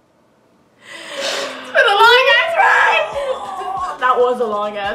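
A second young woman laughs close by.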